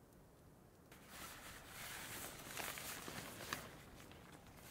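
Tent fabric rustles and flaps close by.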